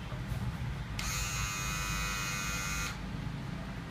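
An electric hair clipper buzzes steadily, then switches off.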